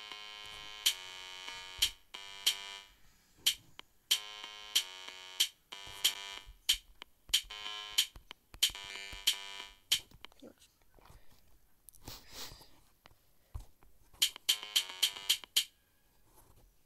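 A synthesized melody plays in short notes.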